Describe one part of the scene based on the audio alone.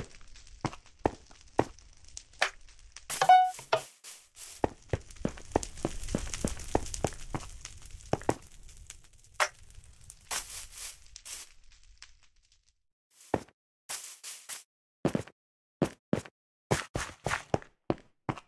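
Quick footsteps tread over grass and stone.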